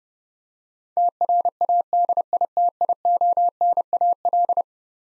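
A telegraph key taps out fast Morse code beeps.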